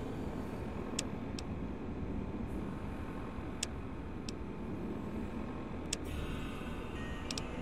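Short electronic clicks sound as menu entries are selected.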